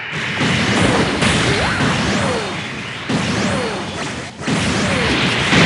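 Beam shots and explosions crack and boom.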